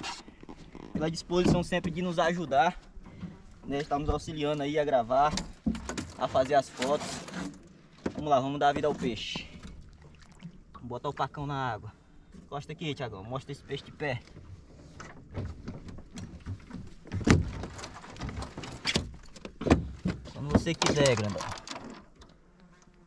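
A man talks with animation close to a microphone outdoors.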